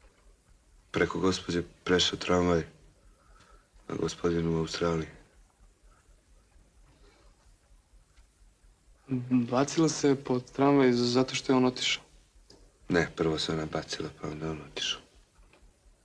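A young man speaks quietly and with feeling, close by.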